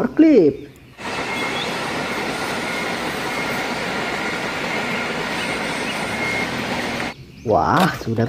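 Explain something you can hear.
A forklift engine hums steadily.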